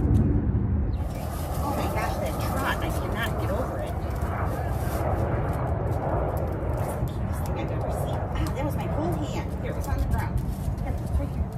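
A woman talks calmly and warmly, close by.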